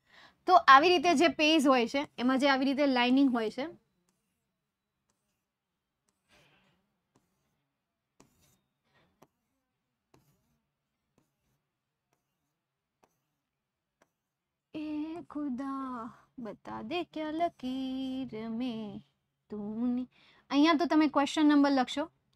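A young woman speaks calmly and clearly, as if teaching, close to a microphone.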